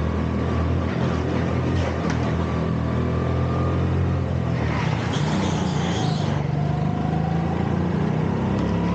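A go-kart engine drones steadily up close, rising and falling in pitch.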